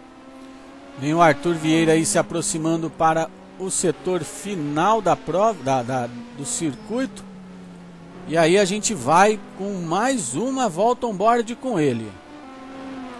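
A racing car engine revs hard, its pitch rising and falling quickly.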